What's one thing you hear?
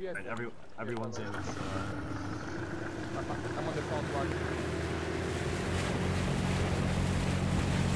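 A boat engine hums steadily and grows louder.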